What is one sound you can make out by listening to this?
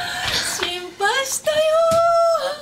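A woman cries out emotionally close by.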